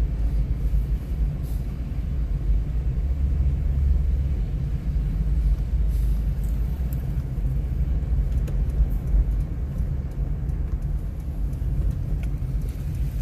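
A car engine hums low and steady from inside a moving car.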